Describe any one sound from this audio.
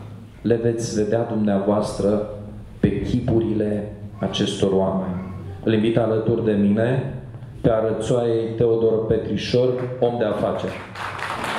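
A middle-aged man speaks calmly into a microphone, amplified in a large hall.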